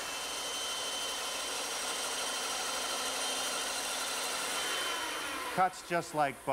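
A power tool whirs steadily.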